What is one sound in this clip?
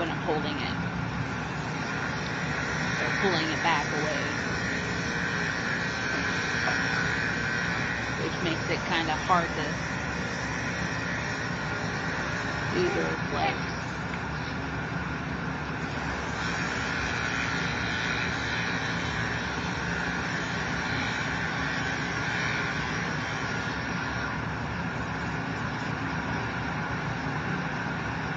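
Electric hair clippers buzz steadily close by.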